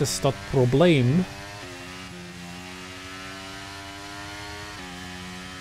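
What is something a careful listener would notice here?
A racing car engine revs loudly, then hums steadily, with its pitch stepping as gears shift.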